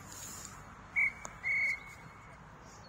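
A referee's whistle blows sharply twice.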